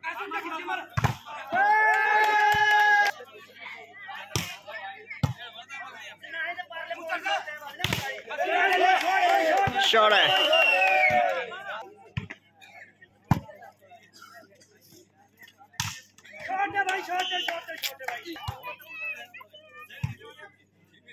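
A volleyball is slapped hard by hand outdoors.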